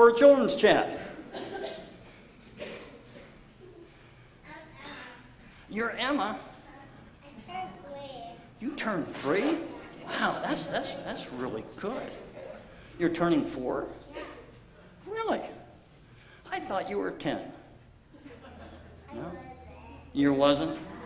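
A man talks calmly to an audience in a room with a slight echo.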